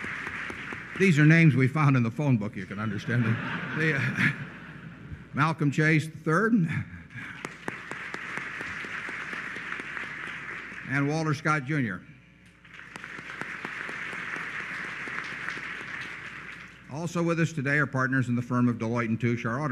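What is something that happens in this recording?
An elderly man speaks with good humour into a microphone.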